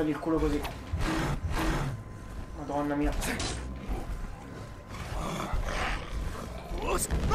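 A beast growls and snarls.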